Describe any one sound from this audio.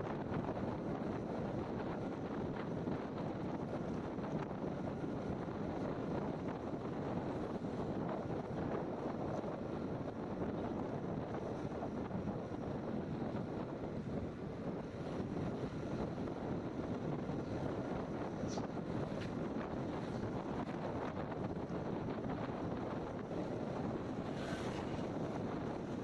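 Wind buffets the microphone.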